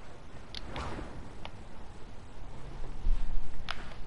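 Wind rushes past during a fall through the air.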